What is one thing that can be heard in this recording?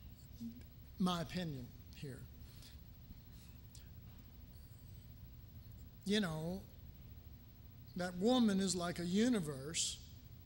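A middle-aged man speaks into a microphone in short bursts, with pauses between phrases.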